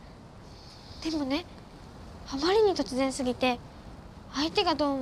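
A young girl speaks in an urgent, hushed voice up close.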